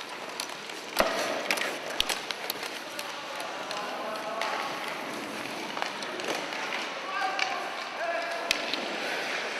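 Hockey sticks clack against a puck on the ice.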